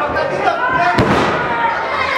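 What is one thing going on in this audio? A body slams hard onto a ring mat with a loud thud.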